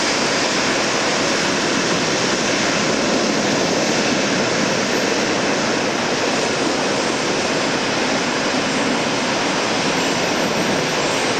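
A jet airliner's engines roar loudly and steadily close by.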